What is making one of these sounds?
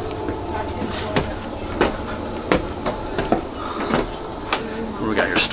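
Footsteps knock on hollow wooden boards.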